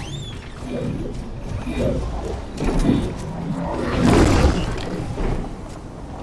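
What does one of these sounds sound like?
Footsteps run across a wooden floor.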